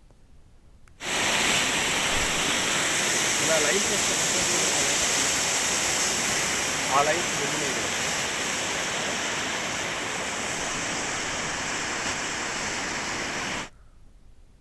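Floodwater rushes steadily.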